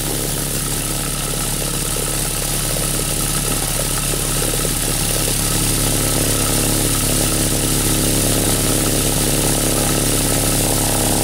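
A fan blows air with a steady hum.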